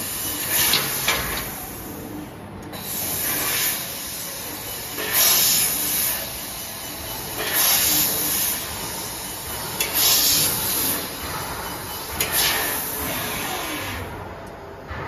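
A cutting machine hisses in short, repeated bursts.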